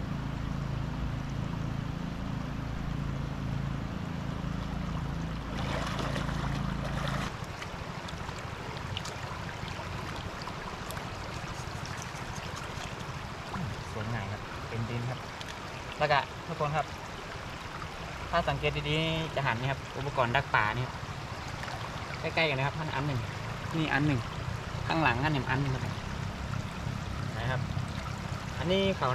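Floodwater rushes steadily.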